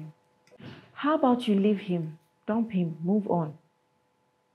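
Another young woman answers with animation nearby.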